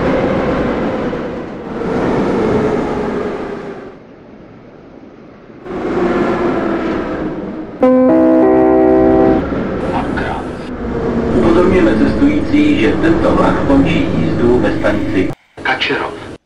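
A metro train rumbles along the rails through a tunnel.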